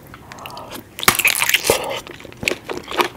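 A woman chews and smacks loudly and close up.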